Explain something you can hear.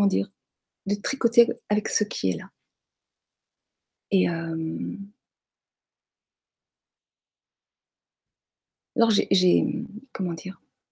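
A middle-aged woman speaks calmly in short bursts over an online call, with long pauses.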